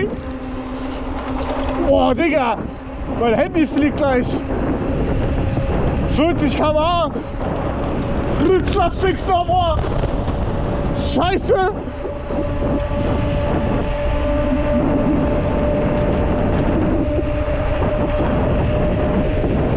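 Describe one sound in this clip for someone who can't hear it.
Wind rushes past while riding outdoors.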